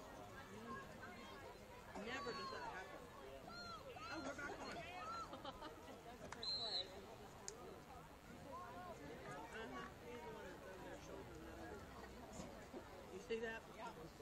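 A crowd of young players and spectators shouts and calls out at a distance outdoors.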